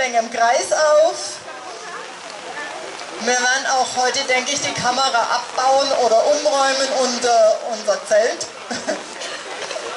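A woman speaks with animation through a microphone and loudspeaker outdoors.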